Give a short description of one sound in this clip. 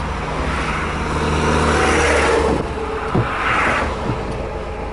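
An oncoming box truck rushes past.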